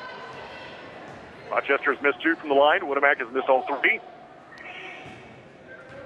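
A crowd murmurs softly in an echoing gym.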